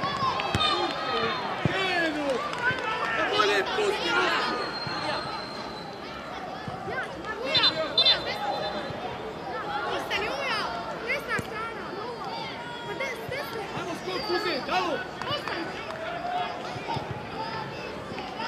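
Young boys shout and call to each other outdoors on an open pitch.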